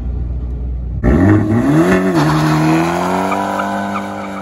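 A small car's sporty exhaust revs up and then settles into a loud burble close by.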